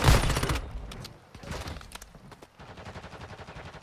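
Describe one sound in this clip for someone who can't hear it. Automatic rifle gunfire bursts in a video game.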